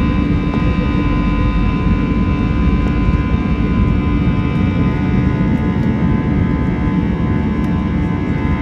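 A jet engine roars loudly and steadily, heard from inside the cabin.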